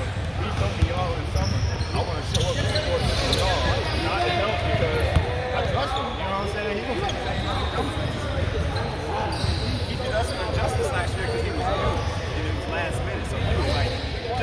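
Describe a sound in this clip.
Many young women and girls chatter and call out across a large echoing gym.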